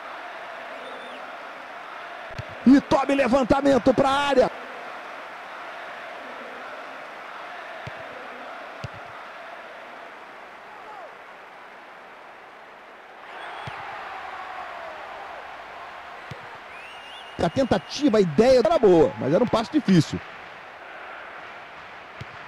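A stadium crowd roars steadily in the background.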